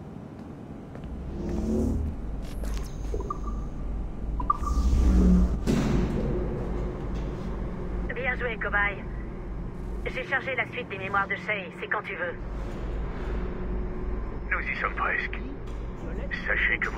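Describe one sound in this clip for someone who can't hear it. A lift hums low and steadily as it moves.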